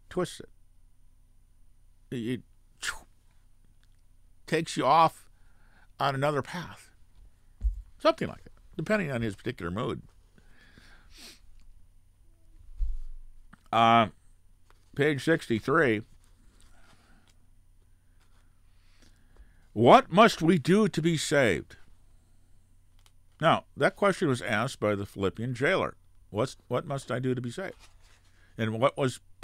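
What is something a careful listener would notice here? An elderly man speaks with animation into a microphone, in short bursts with pauses.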